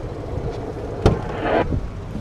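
A car door unlatches and opens.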